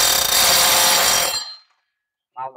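A power drill runs loudly, then stops.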